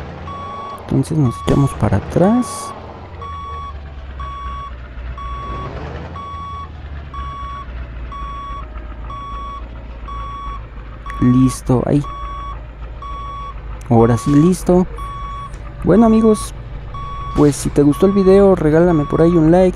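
A truck's reversing alarm beeps at an even pace.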